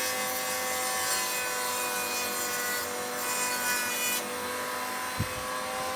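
A machine hums steadily with a high whine.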